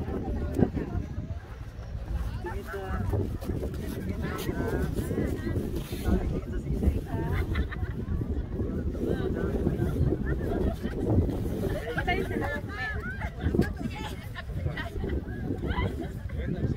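Wind blows and rumbles across the microphone outdoors.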